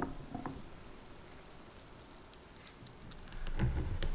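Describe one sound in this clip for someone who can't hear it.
Thick batter pours into a glass bowl.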